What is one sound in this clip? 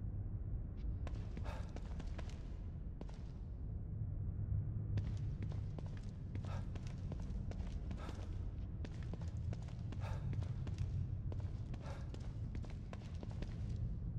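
Footsteps tap on a hard floor, quick and steady.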